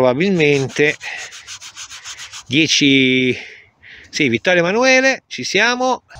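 A gloved hand rubs briskly against cloth.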